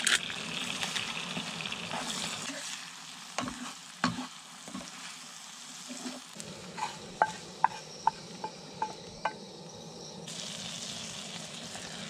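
Eggs sizzle in a frying pan.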